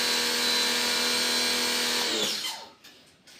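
A pressure washer sprays water with a steady hiss and hum.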